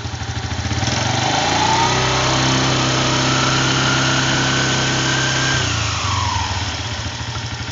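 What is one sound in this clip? A spinning belt drive whines, rising in pitch and then falling.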